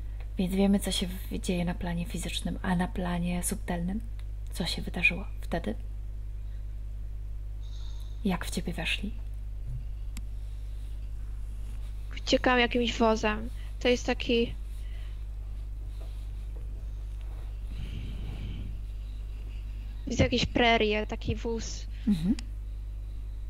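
A woman talks calmly over an online call, heard through a headset microphone.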